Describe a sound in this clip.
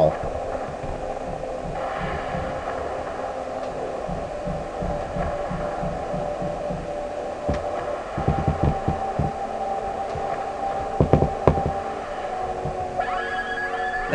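A deep rumbling roar bursts up from the ground.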